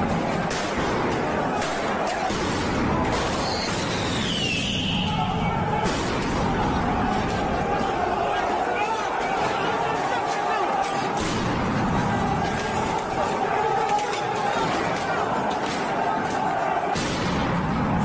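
Loud bangs ring out and echo.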